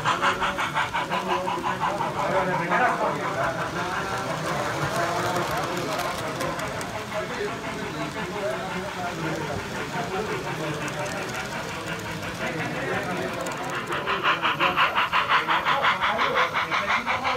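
Model train carriages rattle and click steadily along the rails.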